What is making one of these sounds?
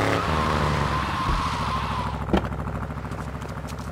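A car engine runs as a car drives.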